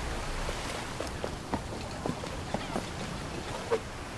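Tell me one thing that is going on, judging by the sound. Footsteps tap on wooden planks.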